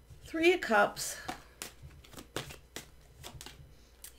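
Playing cards shuffle and riffle with soft, quick flicks.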